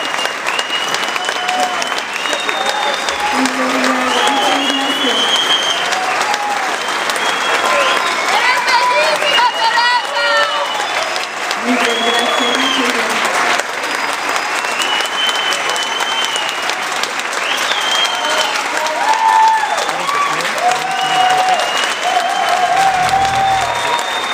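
A woman sings into a microphone, heard through loudspeakers in a large hall.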